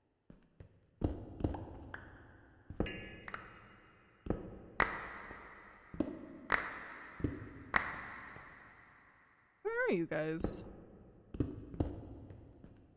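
A pickaxe breaks stone blocks with sharp, crunching knocks, again and again.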